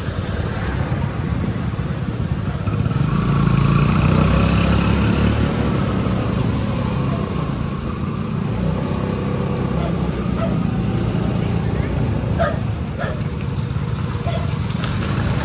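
A motorcycle engine hums steadily close ahead.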